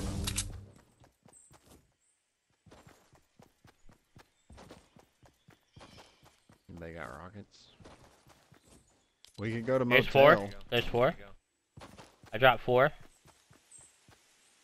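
Footsteps patter quickly across grass.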